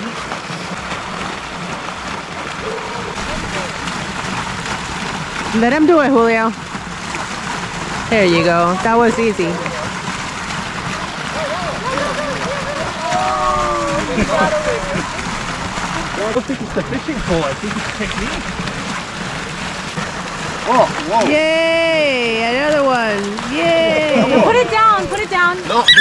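Water splashes steadily into a pond outdoors.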